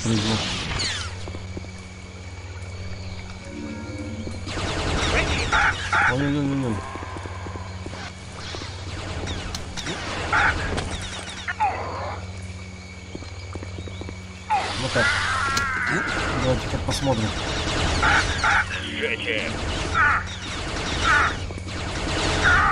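A lightsaber hums steadily.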